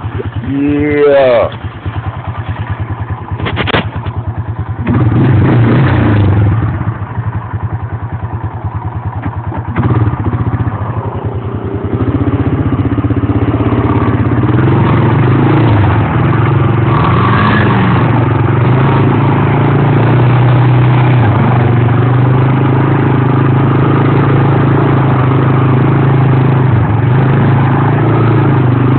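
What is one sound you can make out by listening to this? A quad bike engine runs and revs up close.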